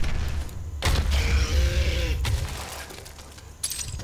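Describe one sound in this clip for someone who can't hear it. A combat shotgun fires blasts in a video game.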